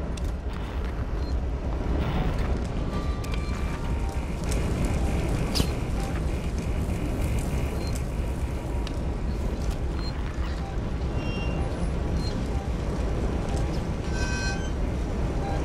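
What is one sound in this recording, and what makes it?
A motion tracker beeps softly at intervals.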